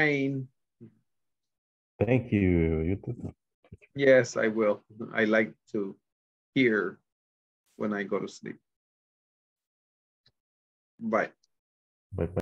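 A man speaks with animation through an online call, with pauses.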